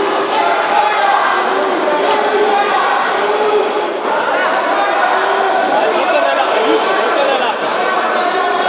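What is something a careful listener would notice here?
Many people talk and call out at once in a large echoing hall.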